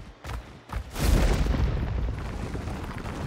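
A fiery burst whooshes and crackles.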